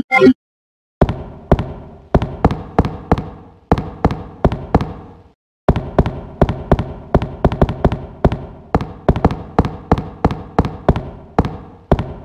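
Footsteps thud on a wooden floor in an echoing room.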